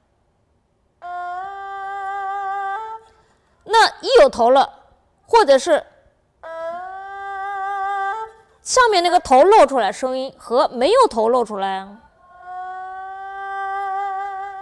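An erhu plays long, gliding bowed notes.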